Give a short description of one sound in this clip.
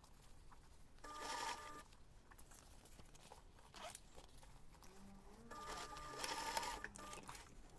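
A sewing machine stitches in short bursts.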